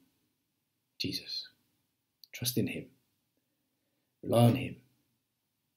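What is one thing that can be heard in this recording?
A man speaks calmly in short phrases close to a microphone.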